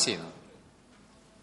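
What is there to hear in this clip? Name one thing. A man speaks briefly through a microphone in a large room.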